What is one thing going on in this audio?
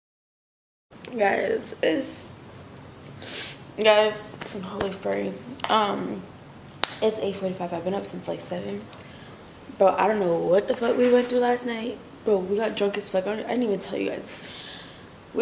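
A young woman talks animatedly and close by.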